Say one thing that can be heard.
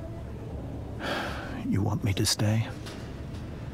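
A man asks a question softly and close by.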